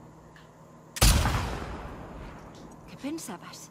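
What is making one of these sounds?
A rifle fires a single loud shot that booms and echoes away.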